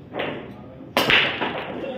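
A cue strikes a pool ball, and the balls scatter with a loud crack.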